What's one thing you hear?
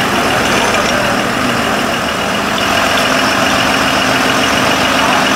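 A fire engine's motor idles loudly nearby.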